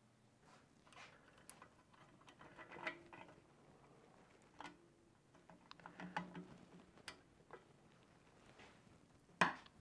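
Metal parts click and clink together.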